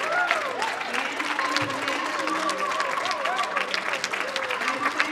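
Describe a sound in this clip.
A crowd of men and women cheers and whoops with excitement.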